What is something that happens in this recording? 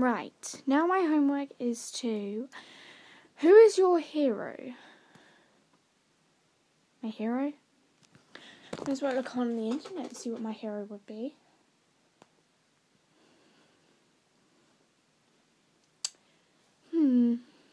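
A young girl talks close to a microphone, casually and in short bursts.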